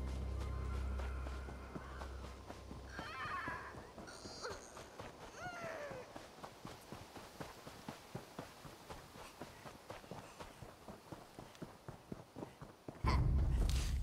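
Footsteps patter quickly on grass and dirt.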